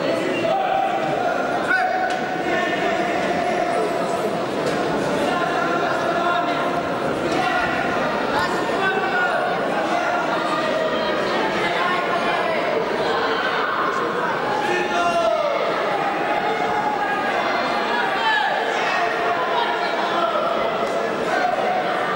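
A crowd of spectators murmurs and talks in a large echoing hall.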